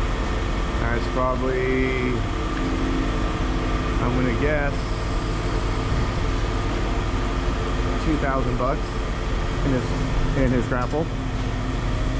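Hydraulics whine in short rising and falling bursts.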